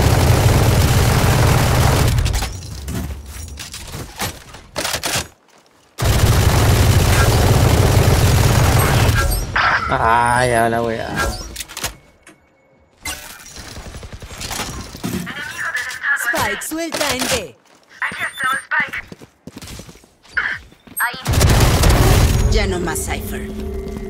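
Automatic rifle fire rattles in rapid bursts.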